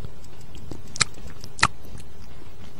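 Short electronic blips sound as options are picked.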